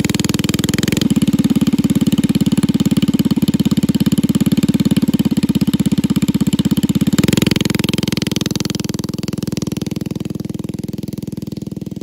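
A small engine revs up, then drives off and fades away.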